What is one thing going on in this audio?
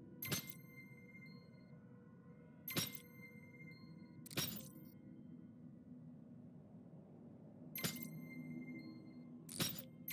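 A metal dial clicks and chimes as it turns into place.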